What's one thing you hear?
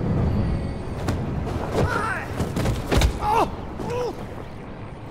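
A man grunts in pain.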